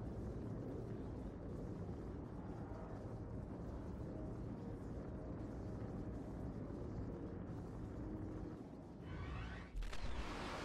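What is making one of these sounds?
Spaceship engines roar in a low, steady rumble.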